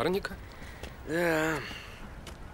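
Another young man answers briefly.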